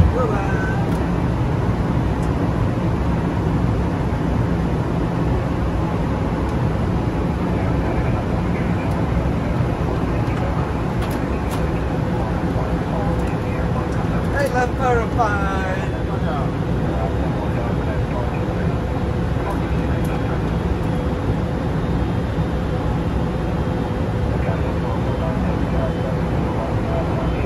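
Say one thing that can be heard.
Engines and rushing air give a steady low roar throughout.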